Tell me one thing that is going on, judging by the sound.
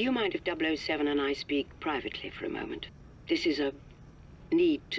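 An older woman speaks calmly over a video call.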